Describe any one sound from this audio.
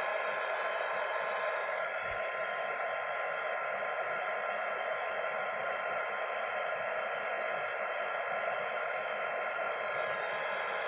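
A heat gun blows with a steady, loud whirring roar.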